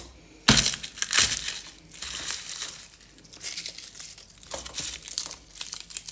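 Papery garlic skins crackle and rustle as cloves are pulled apart.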